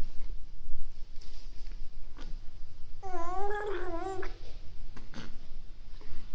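A baby sucks and gulps from a bottle.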